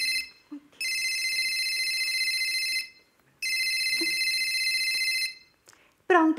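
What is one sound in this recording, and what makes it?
A phone rings loudly in repeated bursts.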